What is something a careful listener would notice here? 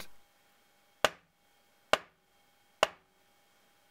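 Hands clap sharply three times.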